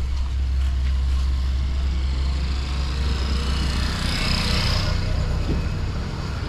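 A motorbike engine drones past nearby.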